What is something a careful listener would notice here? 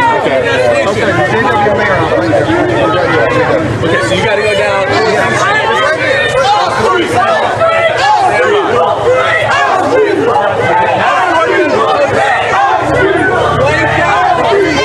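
A crowd of people talk and shout loudly nearby outdoors.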